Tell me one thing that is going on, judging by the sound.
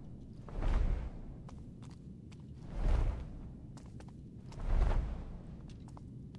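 Short rushing whooshes sweep past, one after another.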